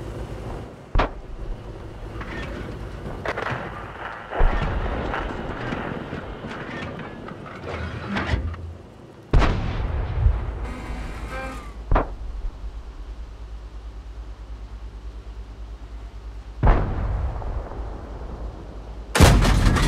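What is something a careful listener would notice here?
A tank cannon fires with loud booms.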